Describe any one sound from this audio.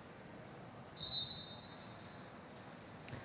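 A referee blows a short whistle blast.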